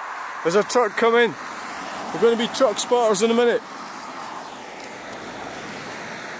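A van drives past on a wet road.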